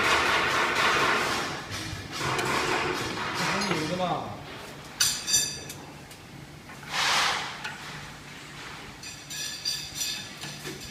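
A metal rod scrapes and clanks against a metal bending machine.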